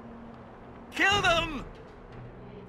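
A man shouts loudly and angrily.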